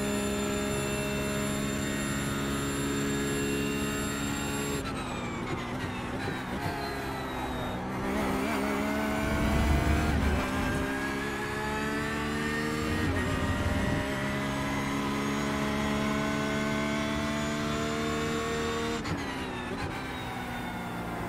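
A racing car engine roars at high revs, dropping sharply when braking and climbing again through the gears.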